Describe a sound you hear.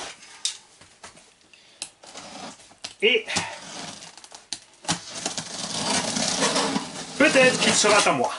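A knife slices through packing tape on a cardboard box.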